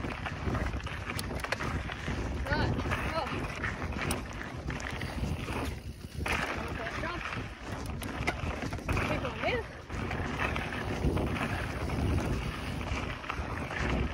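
Bicycle parts rattle over bumps.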